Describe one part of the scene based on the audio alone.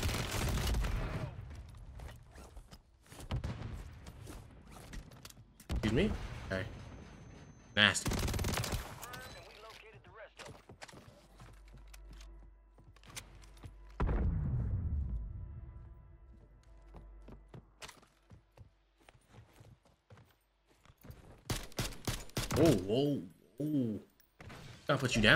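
Gunshots crack from a video game.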